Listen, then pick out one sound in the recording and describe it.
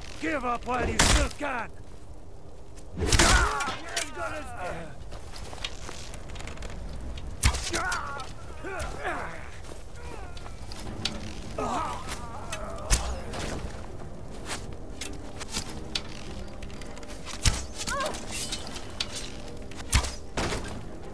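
A bowstring twangs as arrows are loosed, again and again.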